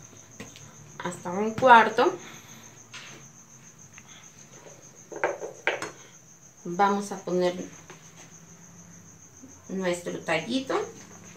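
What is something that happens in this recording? A woman speaks calmly close by, in short bursts.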